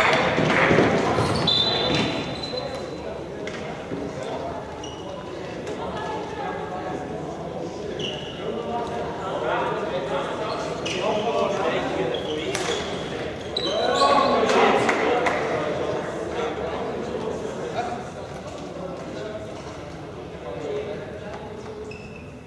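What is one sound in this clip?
Players shout and call to each other across a large echoing hall.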